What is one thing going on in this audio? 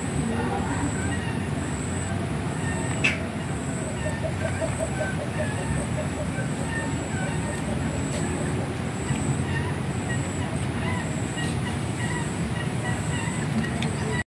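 Cats lap and chew food from a dish close by.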